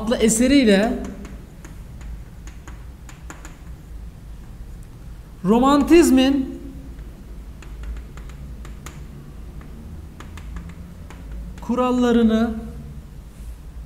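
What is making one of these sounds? A young man speaks in short, drawn-out bursts nearby.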